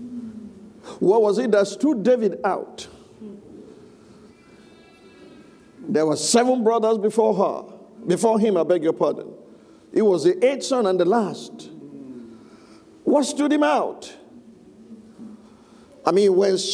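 A middle-aged man speaks with animation into a microphone in an echoing room.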